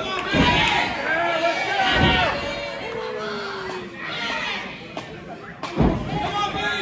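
Wrestlers' bodies thud on a wrestling ring mat.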